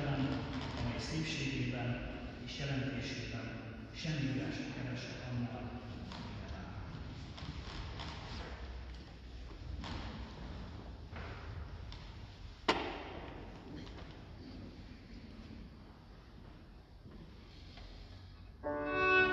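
A middle-aged woman reads out calmly through a microphone.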